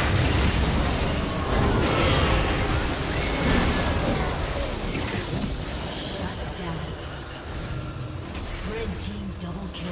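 Video game spells and hits crash and clatter in a fast fight.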